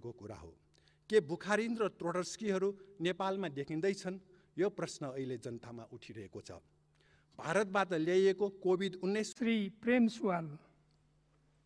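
An elderly man speaks steadily into a microphone in a large hall.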